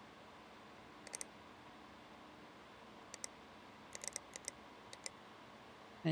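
Short, sharp clicks sound a few times.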